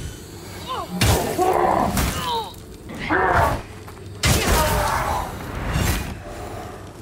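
Swords clash and strike with sharp metallic blows.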